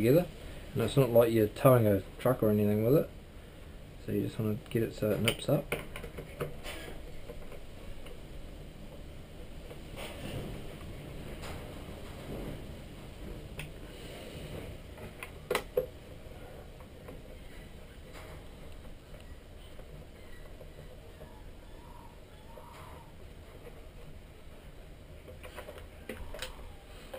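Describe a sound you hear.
Hands handle a plastic remote control with light knocks and rattles.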